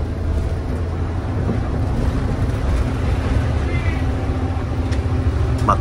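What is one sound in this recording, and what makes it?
A bus rumbles and rattles as it drives along the road.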